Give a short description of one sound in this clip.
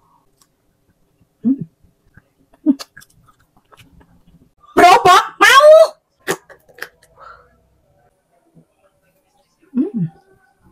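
A woman bites and chews food with soft crunching.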